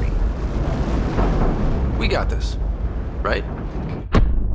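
A young man speaks with urgency close by.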